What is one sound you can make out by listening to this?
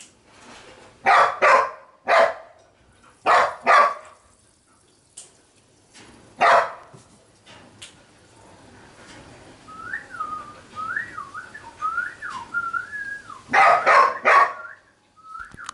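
A cat hisses sharply in short bursts, close by.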